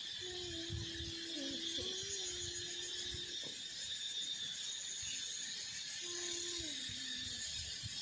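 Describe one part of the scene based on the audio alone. A small child hums softly nearby.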